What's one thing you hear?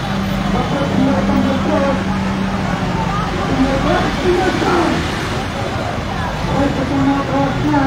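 A truck engine hums as the truck drives along.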